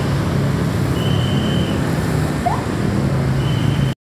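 Motorbikes pass by on a street.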